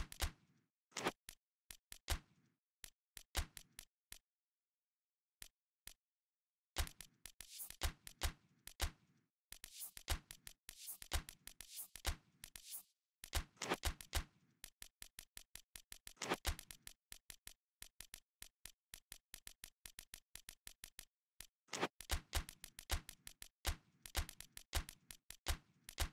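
Short electronic menu clicks tick rapidly as a selection moves.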